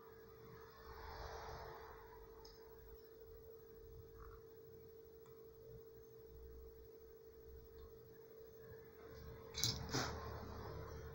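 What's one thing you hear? Hands shift a plastic tube with a soft rustle.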